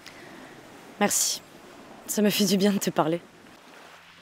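A young woman speaks nearby.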